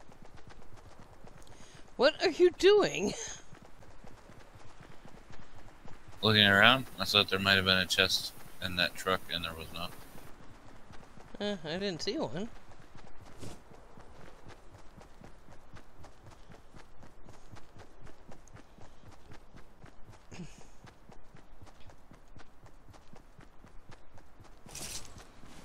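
Footsteps patter quickly as a game character runs over grass.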